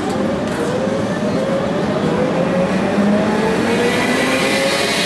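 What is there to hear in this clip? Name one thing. A tram rumbles along with a steady electric hum.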